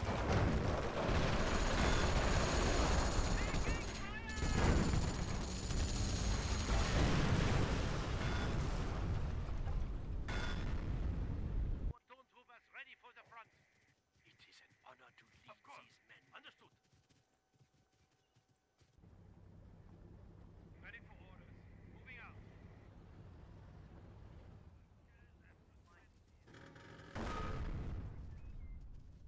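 Explosions boom loudly and repeatedly.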